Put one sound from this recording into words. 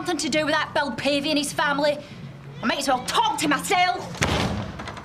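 A woman speaks up close, agitated and shouting.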